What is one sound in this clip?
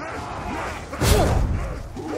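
A heavy blow strikes a zombie.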